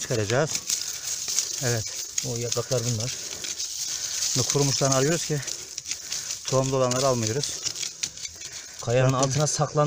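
A stick scrapes and digs into dry, stony soil.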